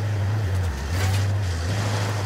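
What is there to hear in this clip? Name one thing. Bullets strike a truck's metal body with a sharp clang.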